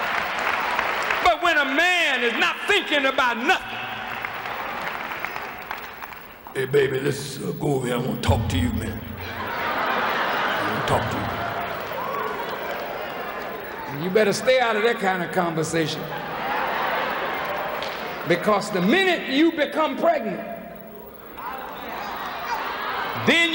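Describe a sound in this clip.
A middle-aged man speaks forcefully into a microphone in a large echoing hall.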